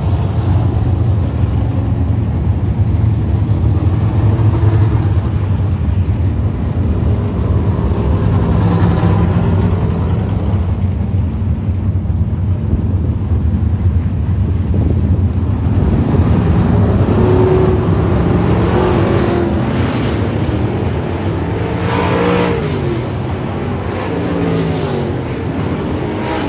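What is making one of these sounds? Race car engines roar steadily around a dirt track outdoors.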